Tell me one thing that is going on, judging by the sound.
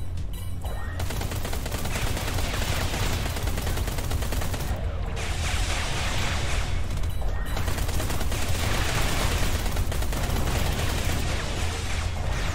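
Laser guns fire in rapid bursts.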